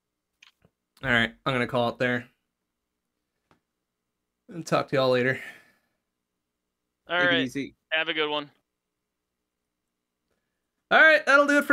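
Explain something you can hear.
A young man talks with animation in short bursts, close to a microphone.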